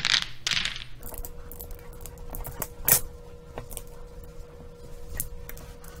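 Mahjong tiles click and clatter against each other on a table.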